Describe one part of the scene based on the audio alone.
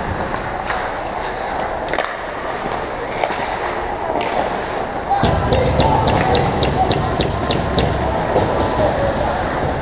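Skate blades scrape and hiss across the ice in a large echoing arena.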